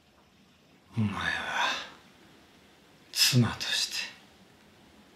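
An elderly man speaks in short bursts close by.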